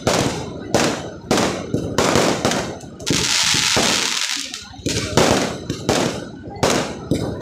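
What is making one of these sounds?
Fireworks burst with loud, rapid bangs close by.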